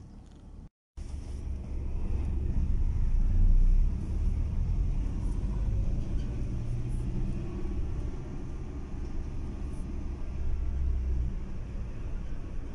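A car engine hums and rumbles steadily while driving.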